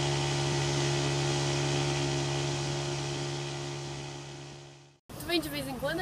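An outboard motor drones steadily and then fades away.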